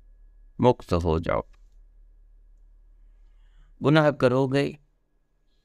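An elderly man speaks calmly and close up, in short phrases.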